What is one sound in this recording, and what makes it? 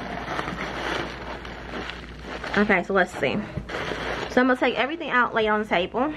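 Plastic bubble wrap crinkles and rustles close by.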